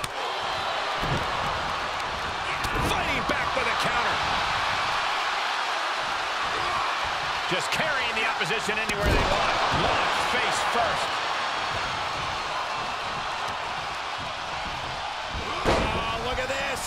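Heavy bodies slam onto a wrestling mat with loud thuds.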